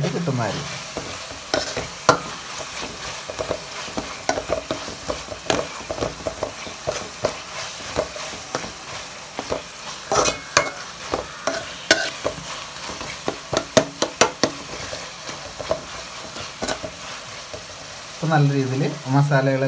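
A metal spoon scrapes and clatters against a pot while stirring food.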